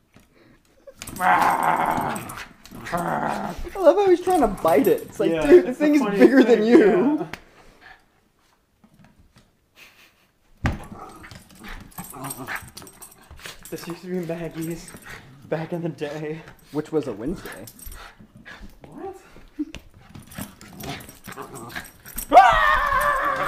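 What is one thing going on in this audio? A small dog's claws click and scrabble on the floor.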